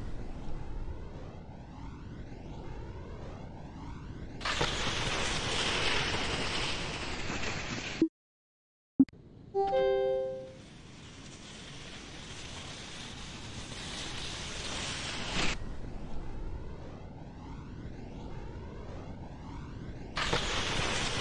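Wind rushes past a ski jumper in flight.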